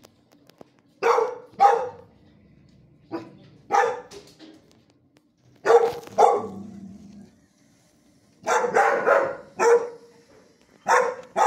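A dog barks loudly, with a ringing echo.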